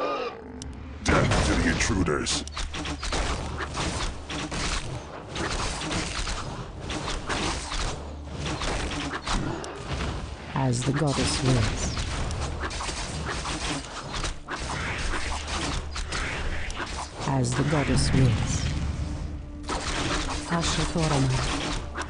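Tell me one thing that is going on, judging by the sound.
Blades clash and strike repeatedly in a fierce fight.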